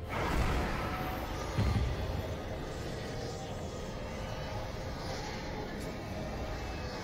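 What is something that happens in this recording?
Video game combat effects thump and crackle.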